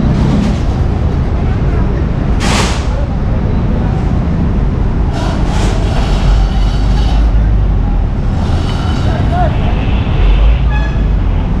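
A diesel bus engine rumbles close by.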